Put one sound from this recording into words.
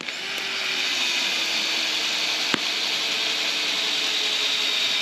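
A hand tool grinds steadily into a wooden log.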